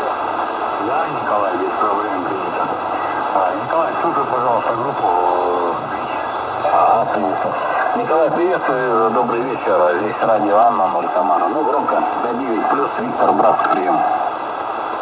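A man talks through a radio loudspeaker, garbled and wavering in pitch.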